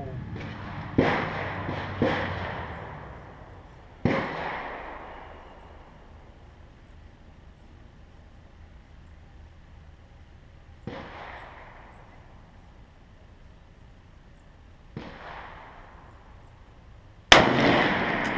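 A rifle fires loud shots that echo outdoors.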